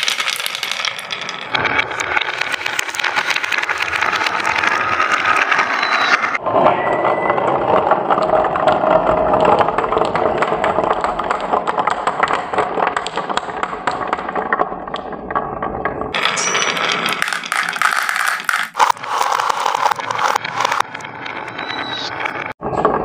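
Marbles rattle and roll along a wooden track.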